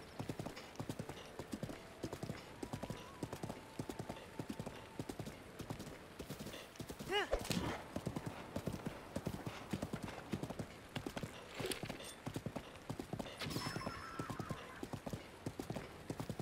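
A horse gallops, hooves thudding in a steady rhythm.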